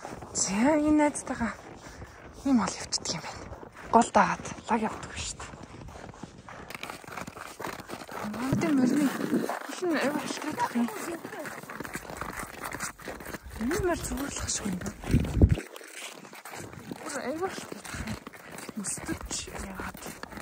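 Hooves crunch through snow at a slow walk.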